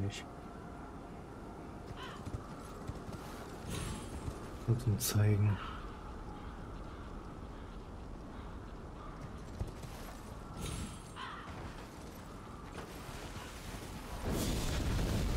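A horse's hooves clop on rock.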